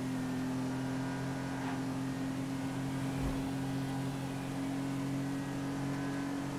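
A car engine drones steadily at cruising speed.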